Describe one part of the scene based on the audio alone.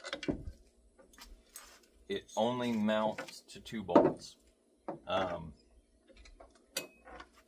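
Metal tools clink and clatter as they are handled.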